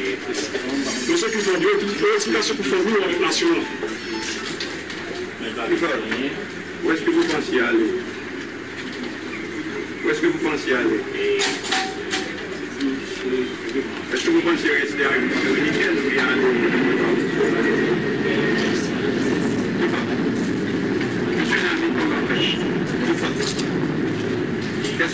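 A man speaks quietly and haltingly nearby.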